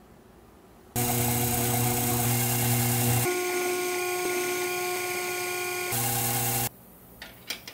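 A small milling machine spindle whines as it drills into a metal part.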